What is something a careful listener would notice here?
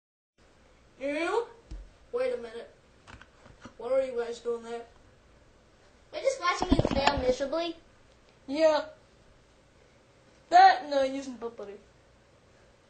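A young girl talks animatedly close by.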